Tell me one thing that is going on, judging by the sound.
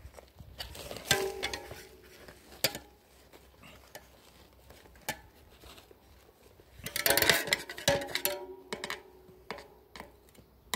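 Metal tools clink and scrape against a bicycle wheel.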